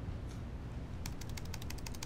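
Fingers tap quickly on a laptop keyboard.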